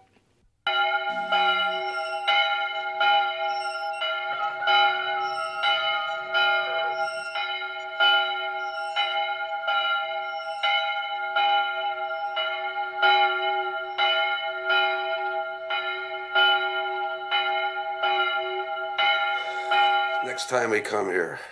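A large bell rings out again and again in slow, steady strokes.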